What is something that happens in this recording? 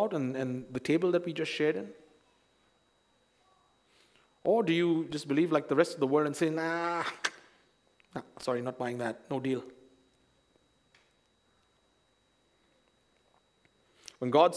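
A man speaks calmly into a microphone, with pauses between phrases.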